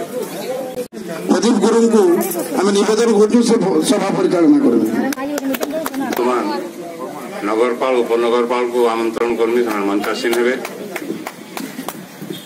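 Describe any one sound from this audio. A man speaks with animation into a microphone, heard through a loudspeaker outdoors.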